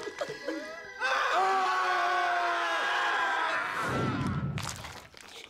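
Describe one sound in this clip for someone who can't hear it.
Several young men scream loudly together.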